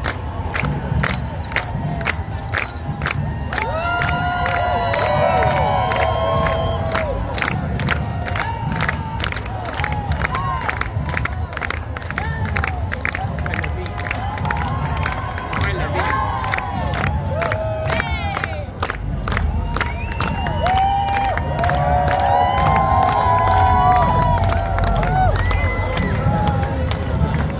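A large outdoor crowd cheers and whistles.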